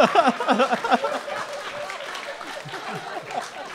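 A man laughs heartily into a microphone.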